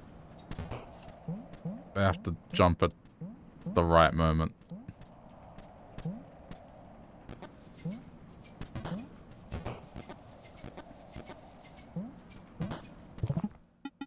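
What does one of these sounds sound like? Short, bouncy game sound effects blip and chirp as a small character jumps around.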